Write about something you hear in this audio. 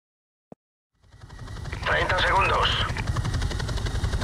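Helicopter rotors thump loudly overhead.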